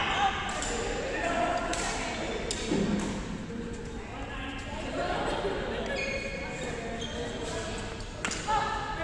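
Badminton rackets strike a shuttlecock with sharp taps.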